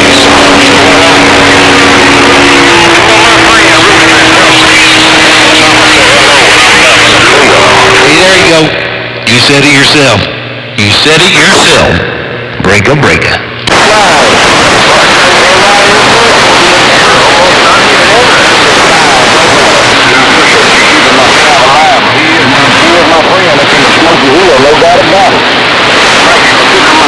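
A shortwave radio hisses with loud static.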